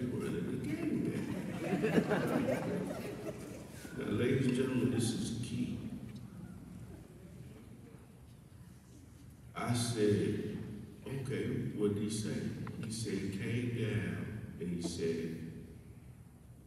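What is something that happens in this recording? A man speaks with feeling through a microphone in a large echoing hall.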